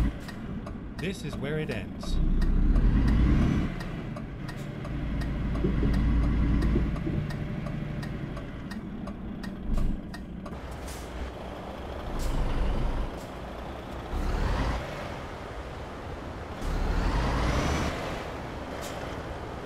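A truck engine rumbles low and rises and falls as it manoeuvres.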